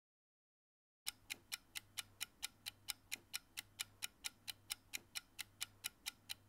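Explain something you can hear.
A bomb timer ticks quickly and steadily.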